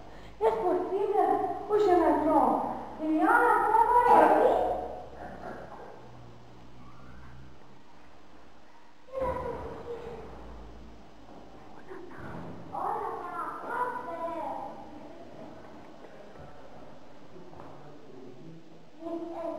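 A woman talks to the children in a lively voice.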